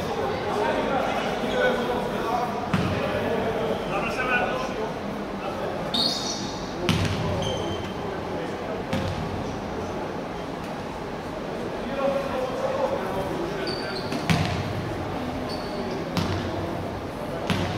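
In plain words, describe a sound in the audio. A basketball bounces on a wooden court in an echoing hall.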